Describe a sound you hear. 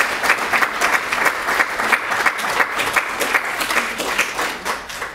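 A crowd applauds steadily in a room.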